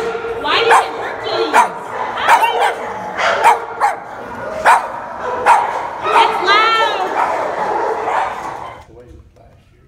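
Dogs bark sharply in an echoing room.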